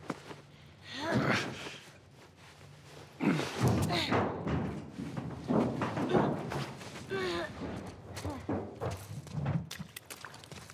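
A young girl talks with animation.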